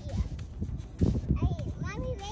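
A small child's footsteps crunch on dry leaves and twigs.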